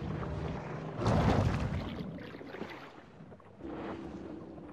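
Water gurgles and rushes as a shark dives underwater.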